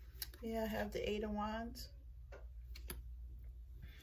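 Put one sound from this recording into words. A card is laid down with a soft tap on a table.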